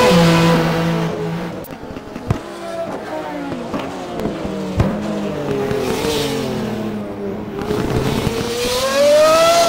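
Another race car engine hums further off.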